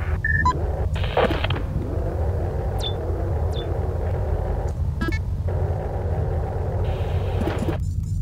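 Short electronic interface beeps chirp now and then.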